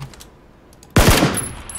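A gunshot cracks loudly.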